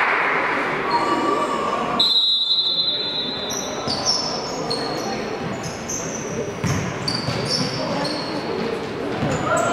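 Sneakers squeak on a wooden court in a large echoing hall.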